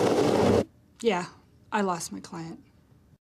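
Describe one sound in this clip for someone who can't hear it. A middle-aged woman speaks calmly up close.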